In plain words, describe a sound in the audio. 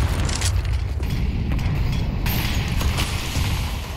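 A grenade explodes with a loud boom.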